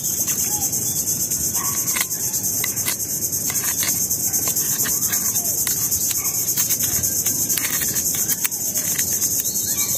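A metal blade scrapes and clicks against shells.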